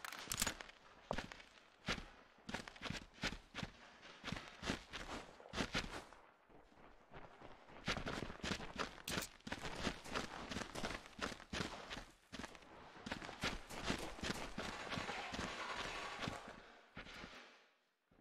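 Footsteps thud quickly on stone.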